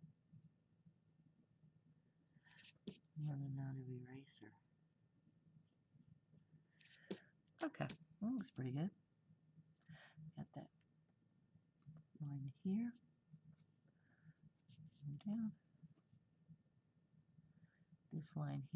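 A crayon scratches softly on paper.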